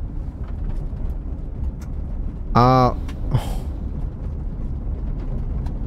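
A car engine rumbles low and steady from inside the cab.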